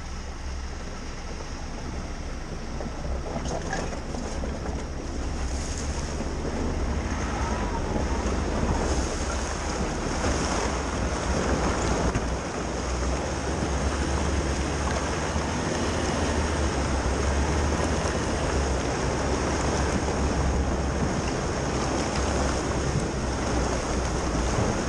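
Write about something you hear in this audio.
A car engine rumbles steadily close by.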